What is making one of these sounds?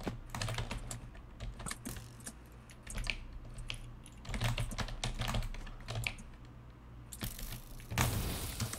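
Footsteps tap across wooden planks.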